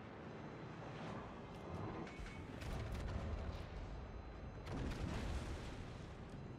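Naval guns fire in deep, booming blasts.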